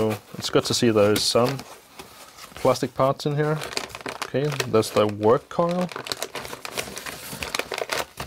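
Foam packing rustles as it is pulled out of a cardboard box.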